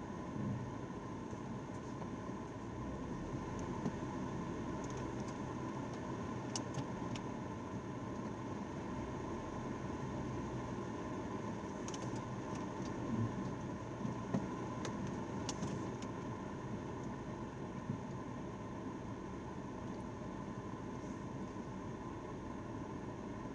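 A car engine idles with a low, steady hum inside a car.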